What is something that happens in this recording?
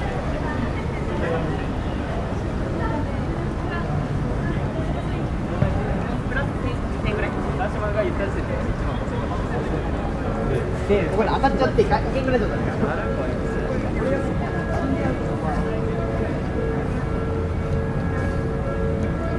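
Voices of a crowd murmur nearby outdoors.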